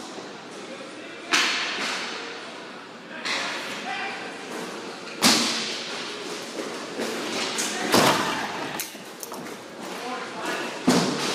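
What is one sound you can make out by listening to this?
Plastic wheels of inline skates scrape and roll across a hard floor.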